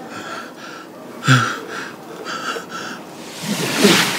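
An elderly man breathes heavily and moans.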